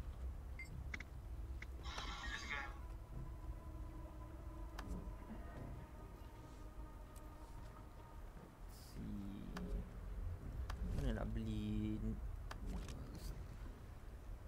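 Soft interface clicks and chimes sound as game menus open and close.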